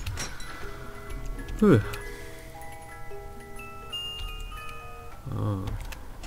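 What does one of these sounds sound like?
A short tinkling music box tune plays.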